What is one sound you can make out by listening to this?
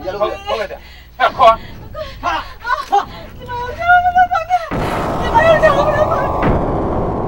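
A young woman wails and cries out in pain close by.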